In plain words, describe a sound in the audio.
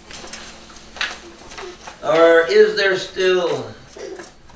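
A middle-aged man speaks loudly to a room, with pauses between phrases.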